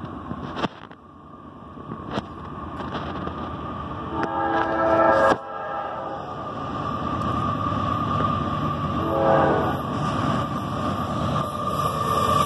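A diesel locomotive rumbles closer, growing louder.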